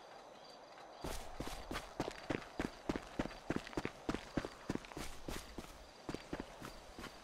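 Footsteps crunch and rustle through dry grass.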